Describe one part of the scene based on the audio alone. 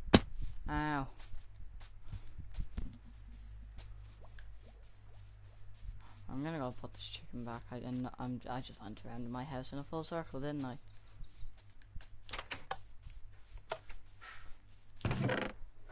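Footsteps fall softly on grass.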